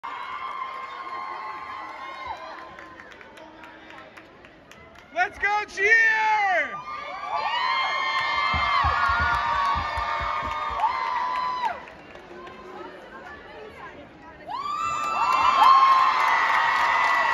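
A large crowd cheers and whoops in an echoing hall.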